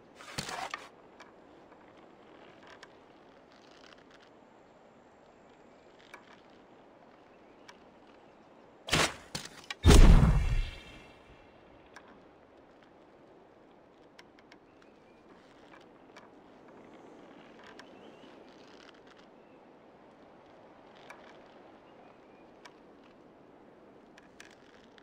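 A hook slides along a taut rope with a soft, steady hiss.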